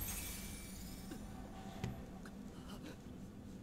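Magical energy crackles and whooshes loudly.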